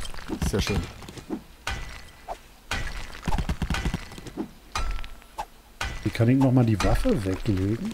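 A pickaxe strikes rock with sharp, repeated knocks.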